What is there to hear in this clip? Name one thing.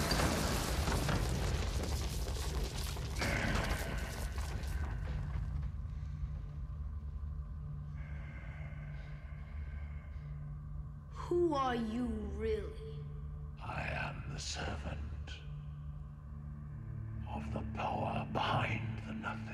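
A large beast growls low and deep.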